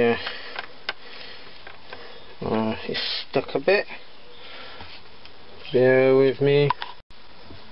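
A piece of wood knocks and scrapes as it is handled.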